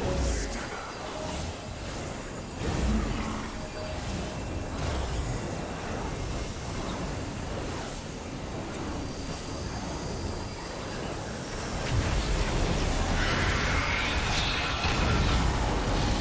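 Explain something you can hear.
Magical whooshing and crackling effects swirl on and on.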